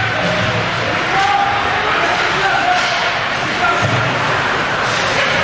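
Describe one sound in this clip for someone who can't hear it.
A crowd of spectators cheers and shouts in an echoing rink.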